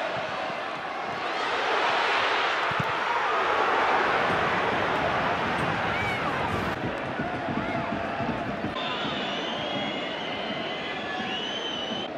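A large stadium crowd roars, swelling and then easing.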